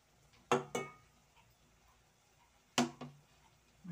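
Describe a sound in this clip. A metal spoon clinks against a metal pot.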